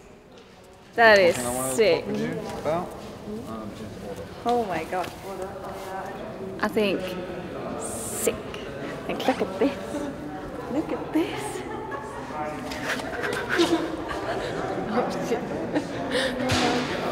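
A young woman talks with excitement close by, in a large echoing hall.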